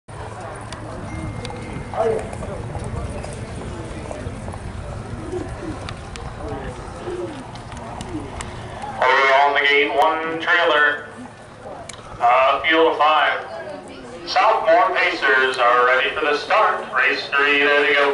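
Harness horses trot past on a dirt track in the distance.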